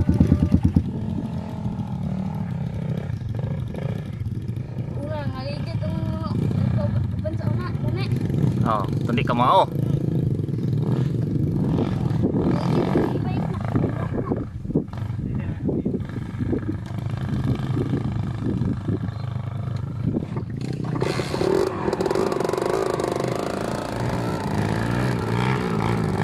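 A dirt bike engine revs and labours up a steep slope close by.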